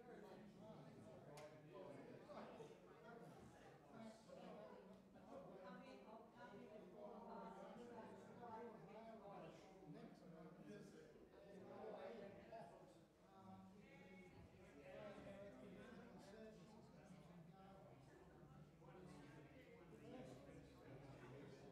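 A man speaks calmly over a loudspeaker in a large echoing hall.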